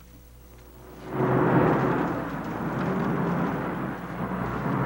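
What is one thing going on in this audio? A car engine rumbles as a car drives past and away.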